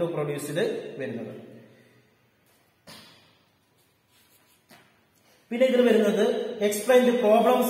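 A young man speaks calmly and close by, with pauses.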